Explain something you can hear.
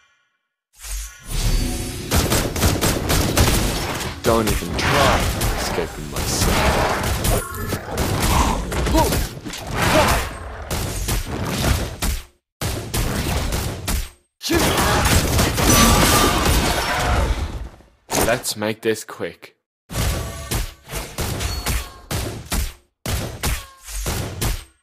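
Game spell effects crash and whoosh during a fight.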